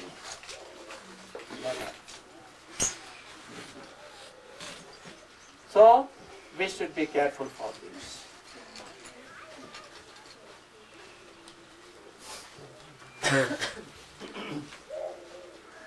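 An elderly man speaks calmly into a microphone, in pauses.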